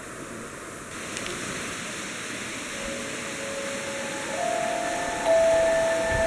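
A shallow stream gurgles over stones.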